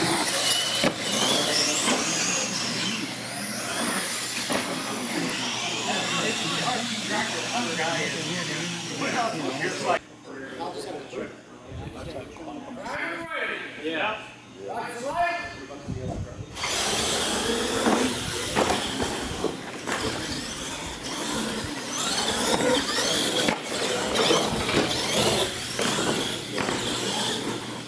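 Small electric motors of toy trucks whine as the trucks race across the floor.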